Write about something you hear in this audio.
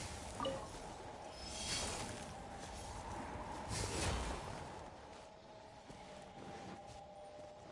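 Magical blasts whoosh and burst in bursts.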